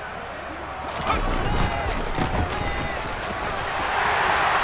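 Football players' pads thud and clash as they collide.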